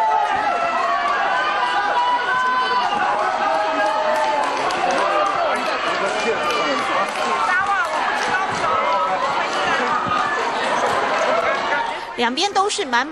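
A large crowd cheers and chatters loudly.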